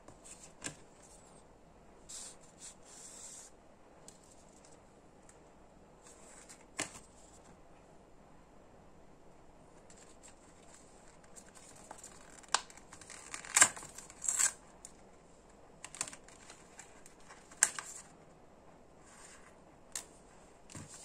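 A card taps and clicks against a paper sleeve.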